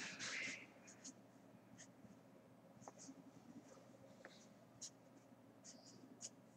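A marker squeaks and taps softly on paper.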